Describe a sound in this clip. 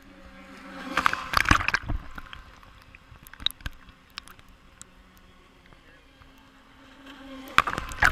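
Water splashes loudly close by.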